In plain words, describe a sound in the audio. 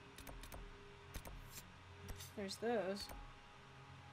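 Soft menu clicks and ticks sound as a selection is made.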